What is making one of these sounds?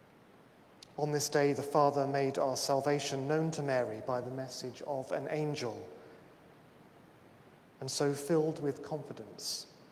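A man speaks slowly and calmly in a large echoing hall.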